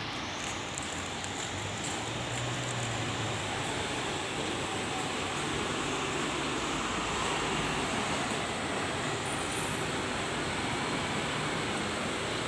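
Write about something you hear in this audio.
Bus engines hum and idle nearby.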